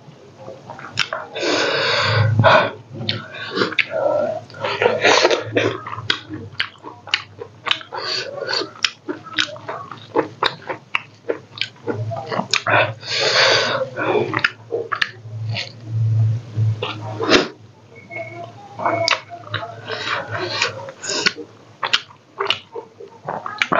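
A man chews and smacks his lips loudly close to a microphone.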